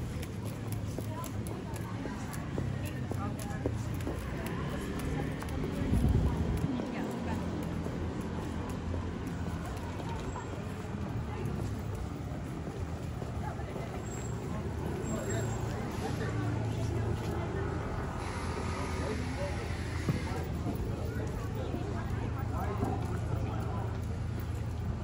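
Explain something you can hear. A crowd of people chatters faintly in the distance.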